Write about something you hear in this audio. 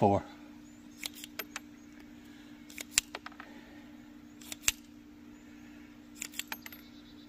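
Metal parts of a revolver click and clack.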